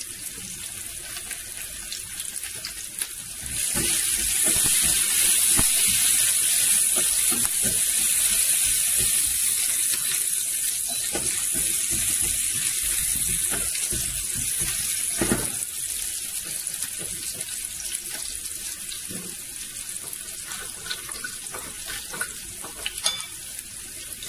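Onions sizzle in a hot frying pan.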